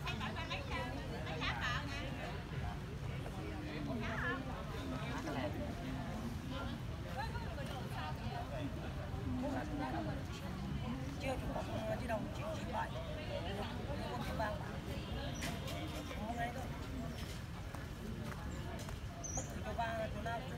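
Several men talk calmly nearby, outdoors.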